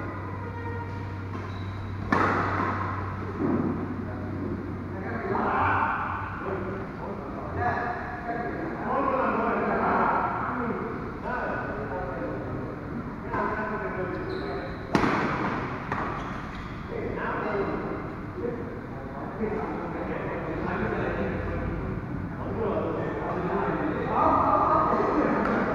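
Sports shoes squeak on a court floor.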